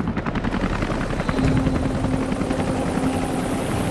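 Helicopter rotors thud overhead.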